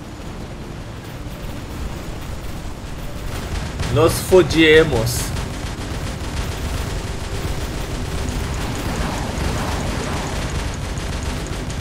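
Heavy robot footsteps thud and rumble steadily.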